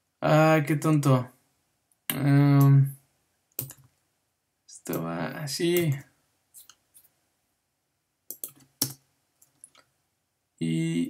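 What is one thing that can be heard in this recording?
A young man speaks into a close microphone, explaining in short phrases with pauses.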